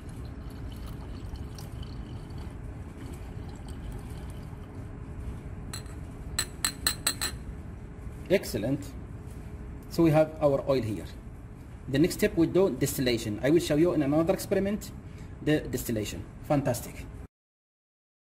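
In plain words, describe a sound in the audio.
Liquid sloshes and fizzes inside a glass flask.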